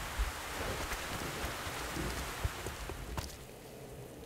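Flames crackle and hiss.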